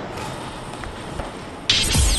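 A spinning vinyl record crackles under the needle.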